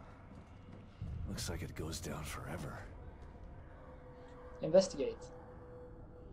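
A young man speaks close to a microphone.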